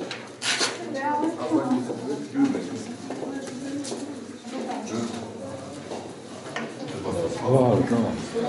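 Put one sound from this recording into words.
A crowd of men and women murmur and talk nearby.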